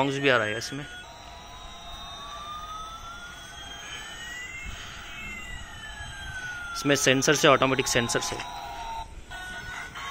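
A toy airplane makes a rising and falling electronic whine.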